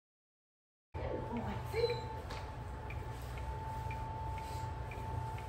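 A woman speaks calmly to a dog nearby.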